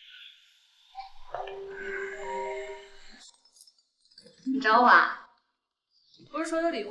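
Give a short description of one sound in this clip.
A young man talks on a phone.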